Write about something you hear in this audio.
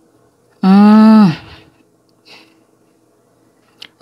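A hand brushes softly over cards on a cloth.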